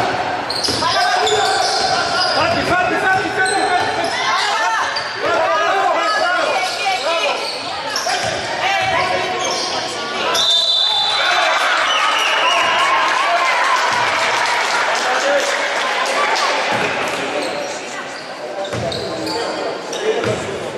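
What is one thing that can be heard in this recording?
Spectators chant and cheer in a large echoing hall.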